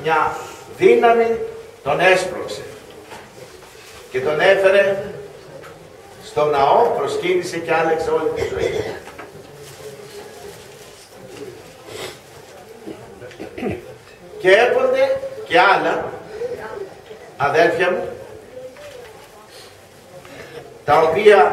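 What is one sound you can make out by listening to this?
An elderly man speaks slowly through a microphone, with long pauses between phrases.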